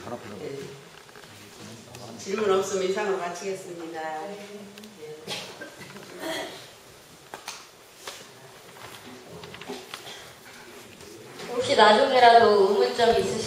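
An elderly woman speaks calmly into a microphone in an echoing hall.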